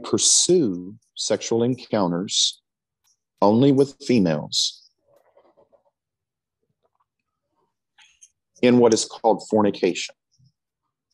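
A middle-aged man speaks calmly and earnestly into a close microphone, with pauses.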